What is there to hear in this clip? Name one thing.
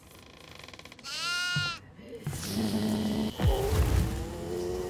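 A creature lets out a shrill, wavering shriek.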